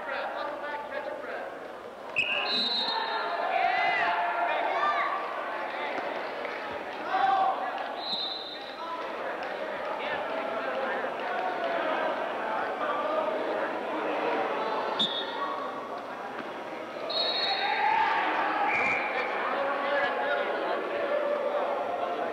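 Several people talk and call out, echoing in a large hall.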